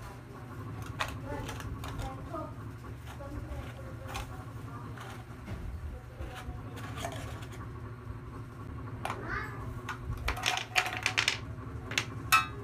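A metal tin clinks and rattles in a small child's hands.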